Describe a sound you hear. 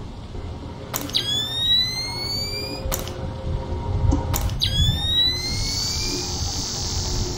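A short electronic whine rises in pitch as night-vision goggles switch on.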